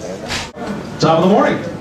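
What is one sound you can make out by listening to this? A younger man answers through a microphone over loudspeakers.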